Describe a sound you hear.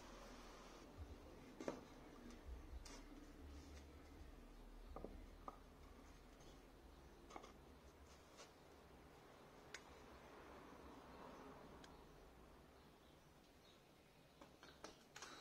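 Wooden boards knock and tap softly against each other and a table.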